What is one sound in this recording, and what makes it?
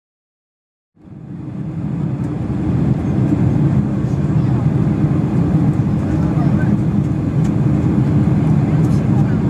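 A jet engine roars steadily inside an airplane cabin in flight.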